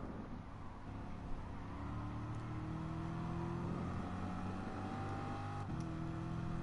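A racing car engine roars, its pitch climbing steadily as it accelerates.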